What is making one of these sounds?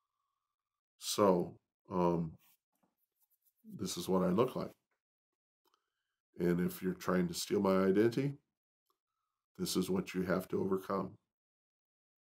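An older man talks calmly close by, with pauses.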